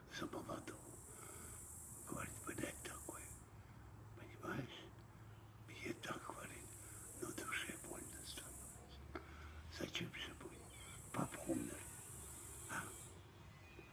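An elderly man speaks close by, slowly and with pauses.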